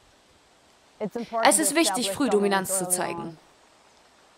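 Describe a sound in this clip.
A young woman speaks close by in a low, calm voice.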